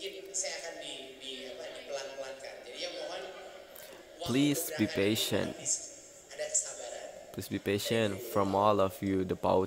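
A young man talks casually, close to the microphone.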